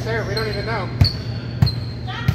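A volleyball is struck with loud smacks.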